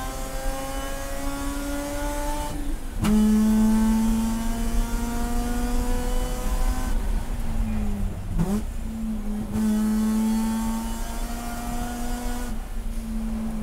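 A race car engine roars loudly from inside the cabin, rising in pitch through the gears.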